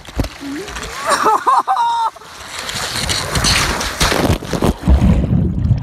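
Water rushes and splashes loudly down a slide.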